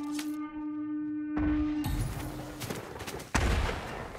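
An arrow whooshes off a bow.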